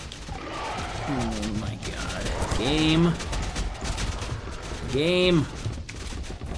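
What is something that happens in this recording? A monster lets out a rising, wailing shriek.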